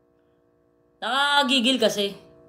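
A young woman speaks up close with animation.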